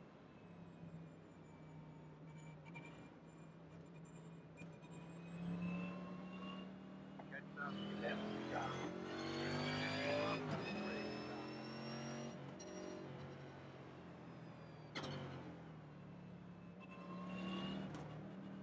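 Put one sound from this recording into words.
A race car engine drones steadily, rising and falling in pitch as the car speeds up and slows down.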